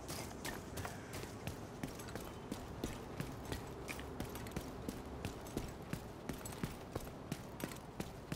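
Heavy footsteps thud quickly and evenly on pavement.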